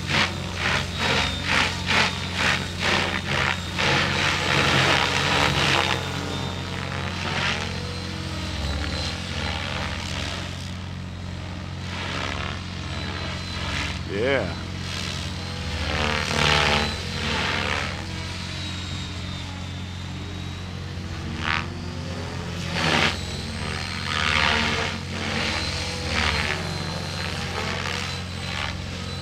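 A small model aircraft motor whines steadily overhead.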